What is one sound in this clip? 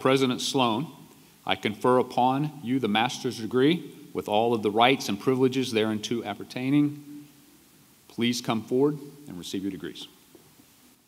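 A middle-aged man speaks calmly into a microphone, heard over loudspeakers in a large hall.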